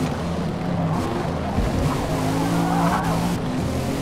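Tyres screech as a car corners.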